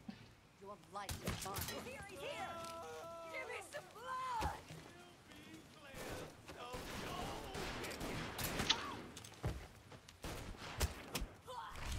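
Blows and scuffling thud in a fight.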